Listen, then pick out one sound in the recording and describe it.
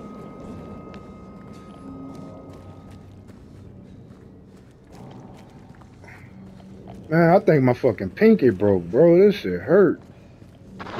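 Footsteps tap slowly on a wet pavement.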